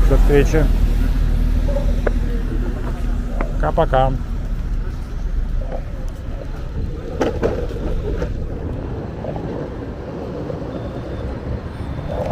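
Traffic rumbles steadily in the distance outdoors.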